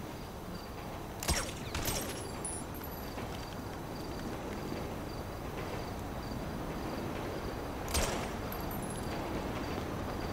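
Footsteps tread slowly on pavement.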